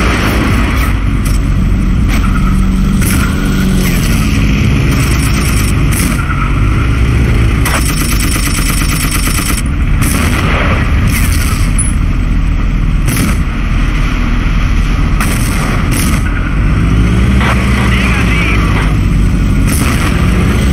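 A tank cannon fires loud booming shots every few seconds.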